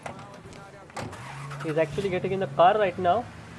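A car engine starts and idles.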